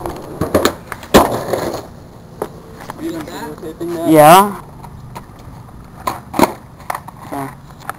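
A skateboard deck knocks against the ground.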